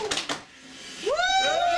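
A group of men and women cheer loudly.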